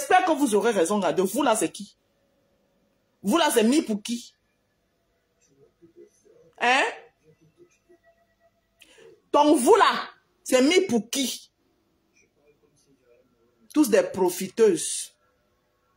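A woman speaks close up, casually, in short bursts with pauses.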